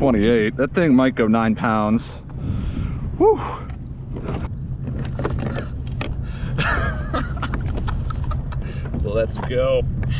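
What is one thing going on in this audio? A man talks excitedly close by.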